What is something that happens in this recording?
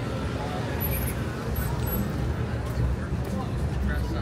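People chatter in the distance outdoors.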